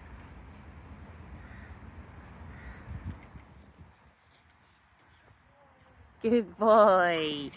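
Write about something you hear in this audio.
A dog runs across grass.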